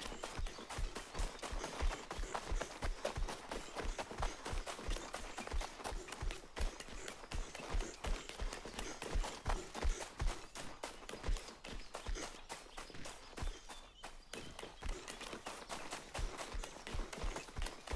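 Footsteps patter quickly on grass and dirt.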